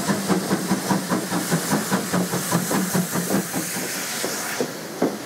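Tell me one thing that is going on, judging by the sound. A steam locomotive hisses loudly, releasing steam.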